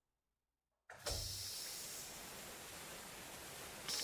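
A short whooshing burst sounds, followed by a steady hiss.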